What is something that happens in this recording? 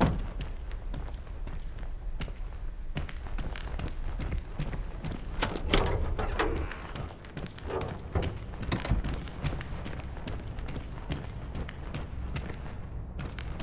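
Footsteps tread steadily across a hard floor.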